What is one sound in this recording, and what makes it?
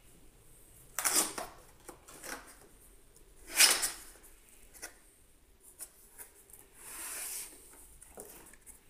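Cardboard flaps scrape and rustle as a box is opened.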